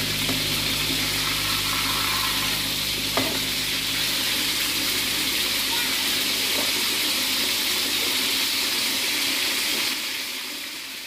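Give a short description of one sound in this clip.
A gas burner roars steadily beneath a wok.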